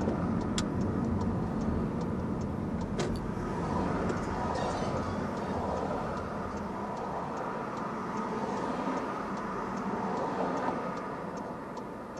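Traffic passes nearby on the road.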